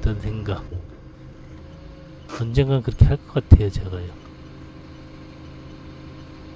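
A forklift engine idles with a low, steady hum.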